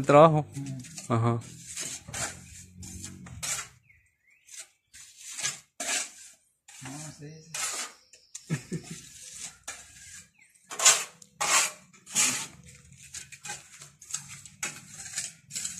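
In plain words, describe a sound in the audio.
A trowel scrapes wet plaster across a ceiling in short strokes.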